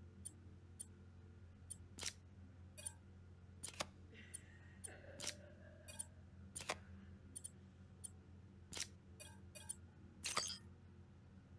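Soft electronic clicks tick repeatedly.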